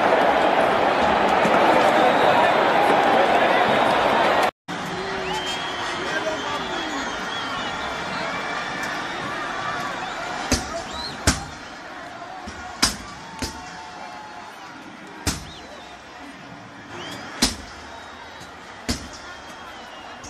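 A large stadium crowd roars and cheers, loud at first and then quieter.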